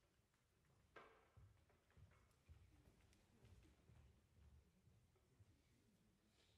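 Footsteps thud across a wooden stage in a large hall.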